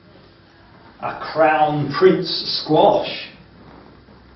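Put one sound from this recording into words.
An older man speaks with animation in a room with a slight echo.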